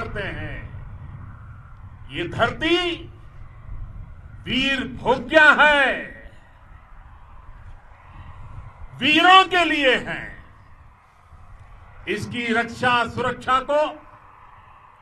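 An elderly man speaks forcefully in bursts through a microphone and loudspeakers outdoors.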